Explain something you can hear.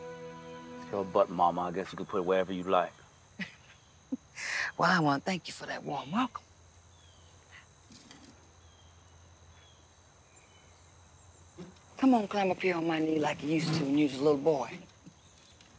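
A middle-aged woman speaks with feeling, close by.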